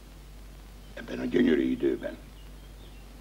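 An elderly man answers in a low, gruff voice.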